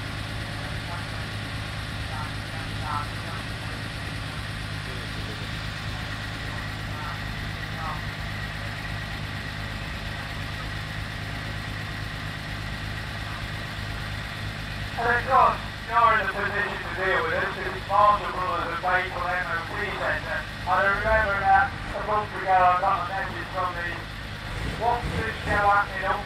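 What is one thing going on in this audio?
A small steam engine runs with a steady low hum.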